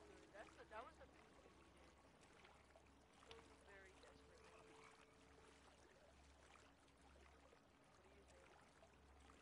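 Gentle waves lap and splash on open water.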